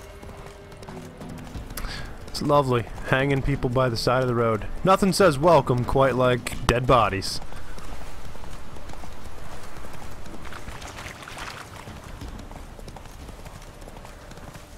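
A horse gallops with steady hoofbeats on a dirt path.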